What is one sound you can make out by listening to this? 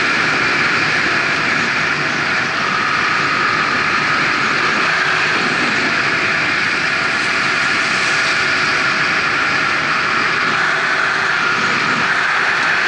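Wind roars steadily against a fast-moving bike.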